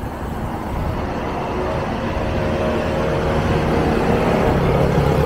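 A minivan passes close by on the road.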